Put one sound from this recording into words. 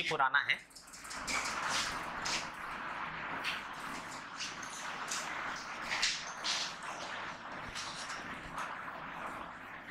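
A board eraser rubs in quick, scratchy strokes across a whiteboard.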